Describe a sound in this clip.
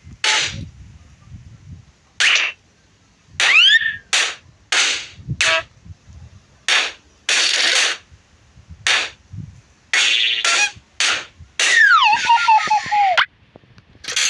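Balloons pop with short bursts, again and again.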